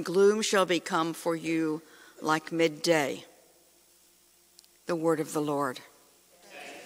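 A middle-aged woman reads aloud slowly into a microphone in a hall.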